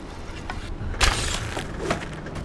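An arrow is released with a sharp whoosh.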